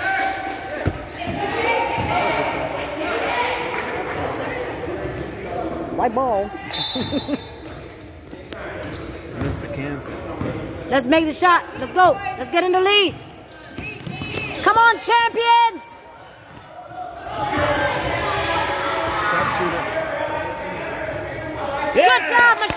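Players and spectators call out in a large echoing gym.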